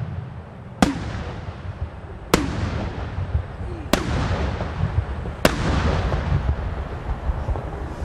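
Fireworks burst with loud booms that echo and rumble away outdoors.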